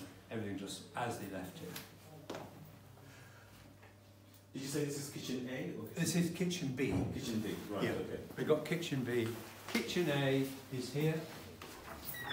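An elderly man talks with animation close by.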